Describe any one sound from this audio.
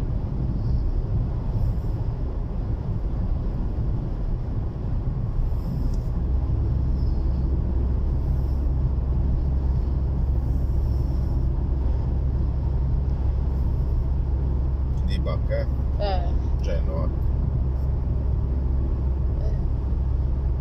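A car rumbles steadily on the road, heard from inside.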